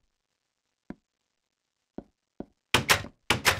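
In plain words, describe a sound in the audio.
A wooden door creaks open and bangs shut.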